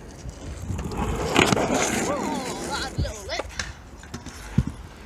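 A skateboard clatters onto concrete as a boy falls.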